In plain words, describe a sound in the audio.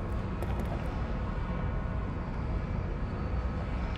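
Water rushes and churns loudly.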